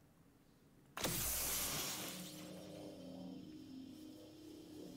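A loud whooshing rush swells and slowly fades.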